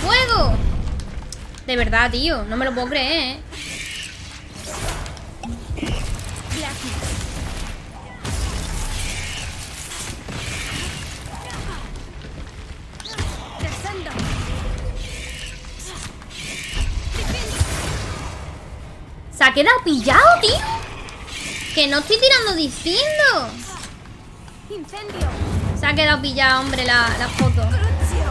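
Magic blasts crackle and thud in a game.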